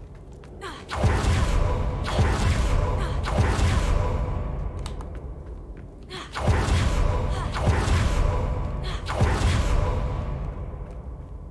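Magic spells blast with loud, roaring bursts.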